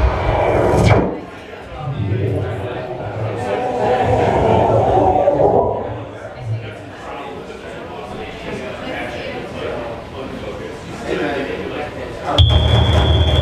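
A crowd chatters and murmurs nearby.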